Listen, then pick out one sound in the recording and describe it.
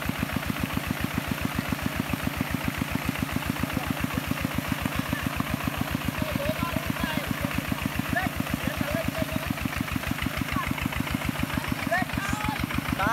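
Mud splashes and churns under turning wheels.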